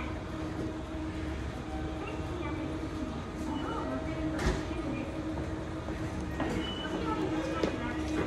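A train idles with a steady low hum in a large echoing hall.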